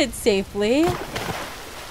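A young woman speaks quietly close to a microphone.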